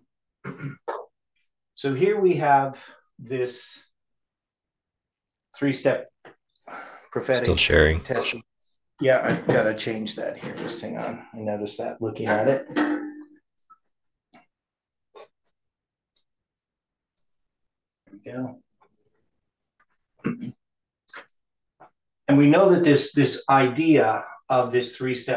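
A middle-aged man speaks calmly, as if explaining, nearby.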